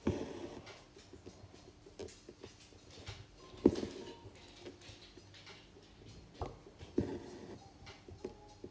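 Fingertips rub and tap softly on fabric stretched in a wooden hoop.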